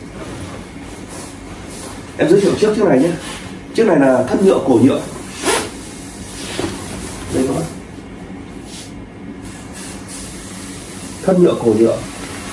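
A fabric jacket rustles as it is handled.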